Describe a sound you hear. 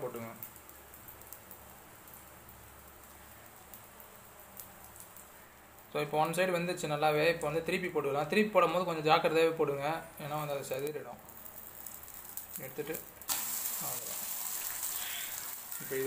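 Noodles sizzle in hot oil in a pan.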